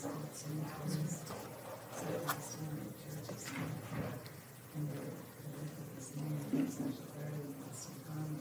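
A woman speaks steadily to an audience through a microphone.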